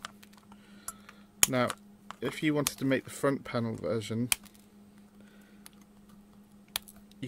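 Small parts click and tap as fingers handle them.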